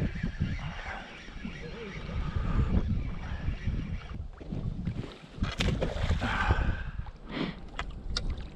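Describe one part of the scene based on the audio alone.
Wind blows outdoors over open water.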